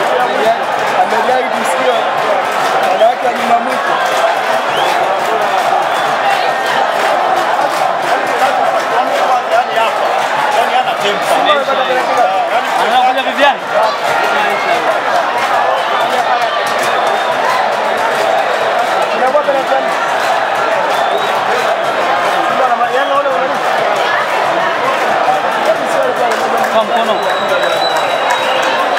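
A large crowd of spectators chatters and murmurs steadily outdoors.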